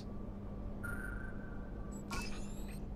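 A puzzle panel hums with a soft electronic tone as a line is traced across it.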